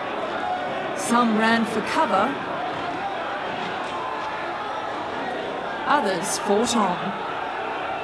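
Men shout loudly.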